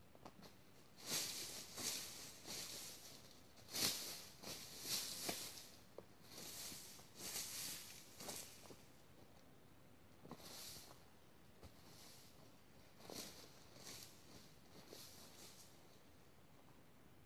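A tool scrapes and rakes through dry leaves and soil.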